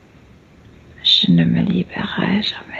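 An older woman speaks calmly over an online call.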